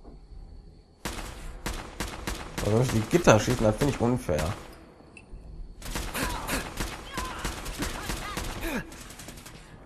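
A machine gun fires rapid bursts, with loud, sharp cracks.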